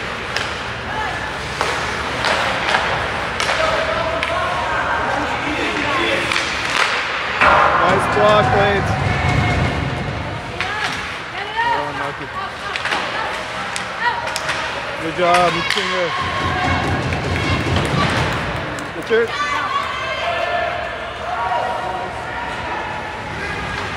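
Hockey sticks clack against the puck.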